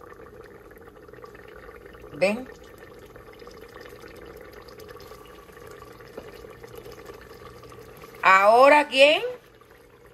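A thick stew bubbles softly in a pot.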